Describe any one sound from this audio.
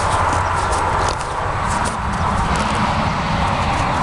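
A horse's hooves step softly on grass.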